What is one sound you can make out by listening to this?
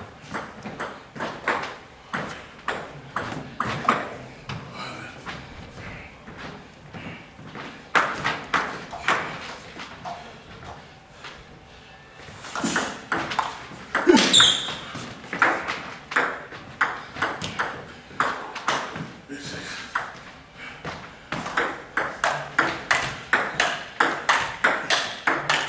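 A ping-pong ball clicks back and forth on paddles and a table in a large echoing hall.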